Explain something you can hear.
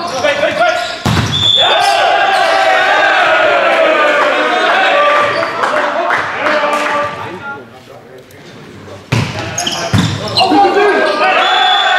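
A volleyball is struck hard with a loud smack in an echoing hall.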